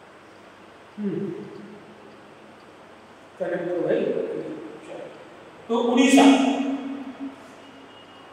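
A man speaks in short bursts through a microphone, in a room with a slight echo.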